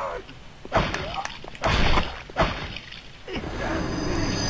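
A sword swishes and strikes.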